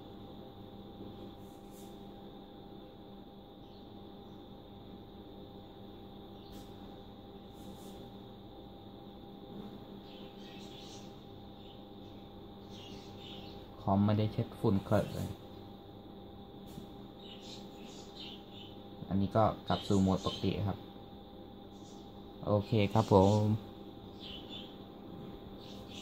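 A computer fan hums steadily.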